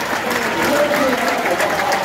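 A spectator claps close by.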